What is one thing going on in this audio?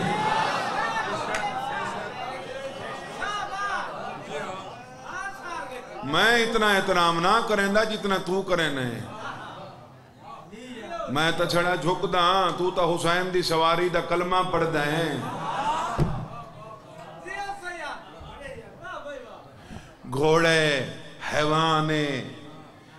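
A young man speaks with passion into a microphone, his voice rising into long, sung phrases and carrying through loudspeakers.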